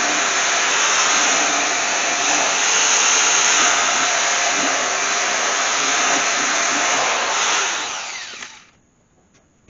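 An air-powered wire wheel grinds loudly against metal, then winds down.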